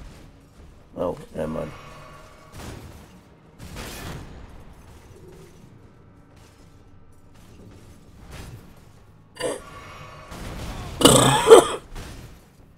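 Metal weapons clash and clang against a shield.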